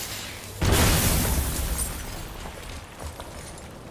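A loud explosion booms and rock debris crashes down.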